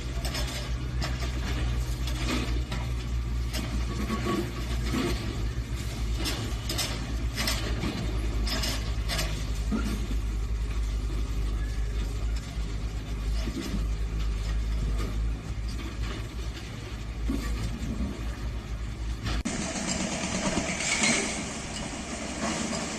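Concrete cracks and crunches as a machine breaks it apart.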